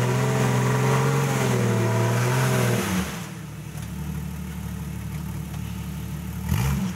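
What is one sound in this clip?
An off-road vehicle's engine revs hard and loud.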